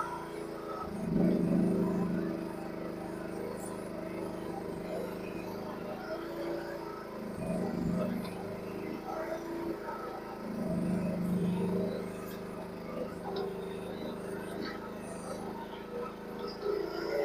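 A small excavator's engine runs steadily close by, swelling louder now and then.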